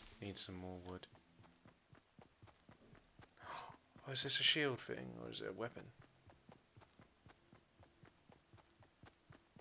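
Footsteps run quickly over grass and dirt.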